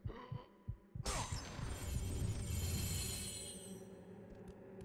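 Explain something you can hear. A magical burst shimmers and swells.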